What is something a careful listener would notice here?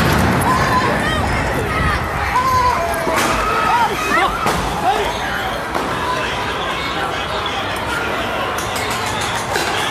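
A crowd of young men and women shout excitedly nearby in a street.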